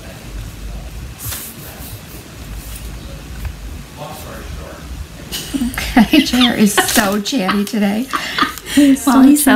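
A paintbrush dabs and brushes softly on paper.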